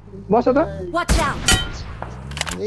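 Gunshots crack sharply.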